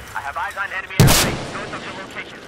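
A sniper rifle fires a single loud shot.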